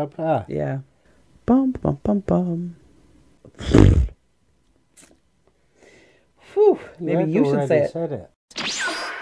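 A middle-aged man talks casually into a close microphone.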